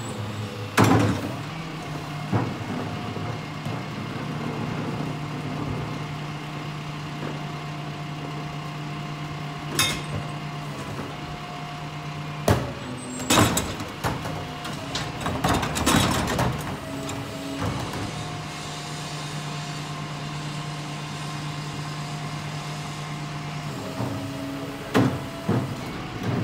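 Plastic bins bump and clatter as they are emptied into a garbage truck.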